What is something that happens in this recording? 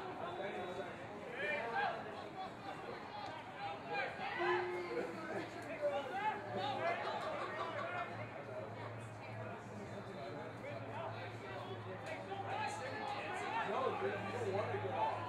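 Men shout and call to each other across an open outdoor field.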